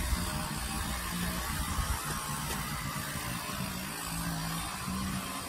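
A string trimmer whips through tall grass.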